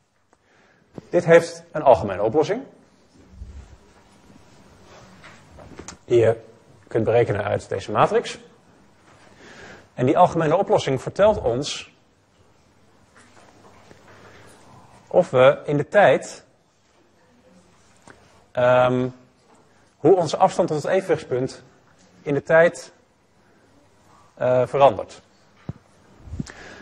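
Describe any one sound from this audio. A man lectures calmly in short phrases with pauses, heard through a microphone.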